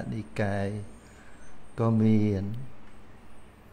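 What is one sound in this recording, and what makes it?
An elderly man chants slowly and in a drawn-out voice into a microphone.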